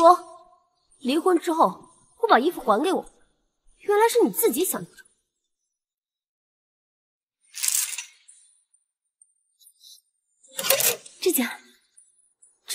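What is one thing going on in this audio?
A young woman speaks with irritation nearby.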